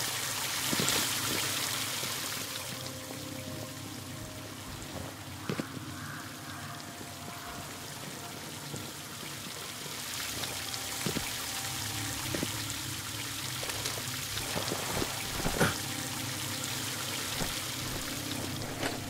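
Footsteps tread on hard ground.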